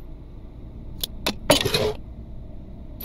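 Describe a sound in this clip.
A glove box clicks open.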